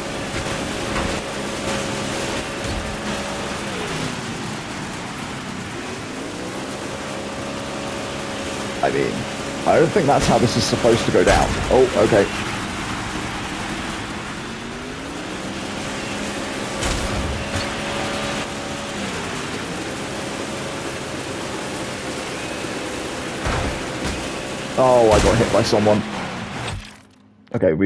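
A racing car engine roars, rising and falling in pitch as the car speeds up and slows down.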